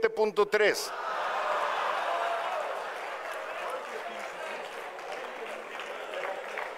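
A group of people applaud.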